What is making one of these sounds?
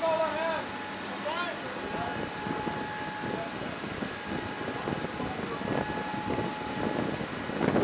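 A cargo winch whirs steadily as it pulls a helicopter.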